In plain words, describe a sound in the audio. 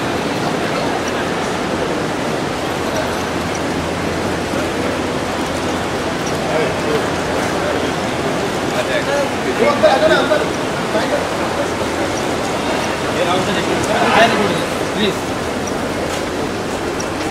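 A crowd murmurs in a busy, echoing hall.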